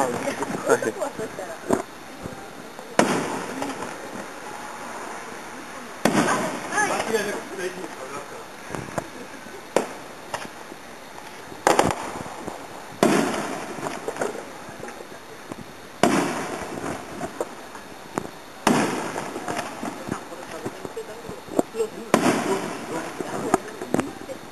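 Fireworks crackle and fizzle after each burst.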